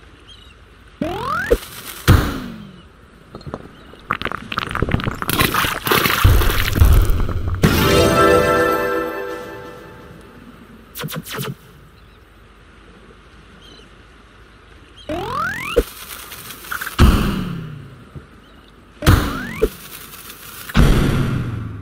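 A cartoon cannon fires with a rising whistle.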